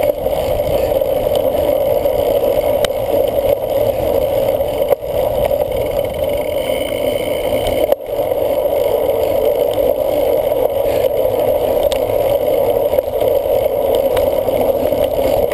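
Cyclocross bike tyres roll over grass and dirt.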